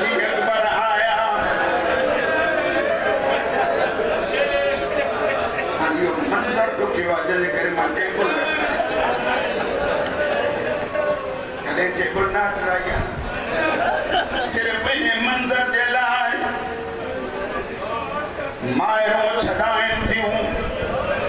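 A crowd of men beat their chests in rhythm.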